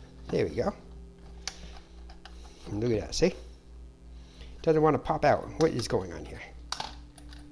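Plastic parts click and rattle as hands handle a small device.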